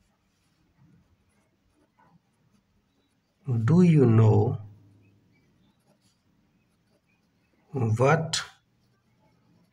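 A felt-tip pen squeaks softly as it writes on paper.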